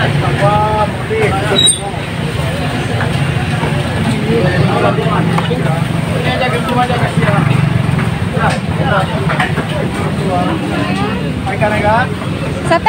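Men and women chatter and call out nearby in a busy crowd.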